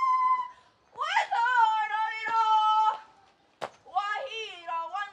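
A woman calls out loudly outdoors.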